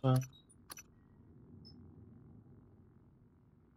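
A menu blips softly as the selection moves.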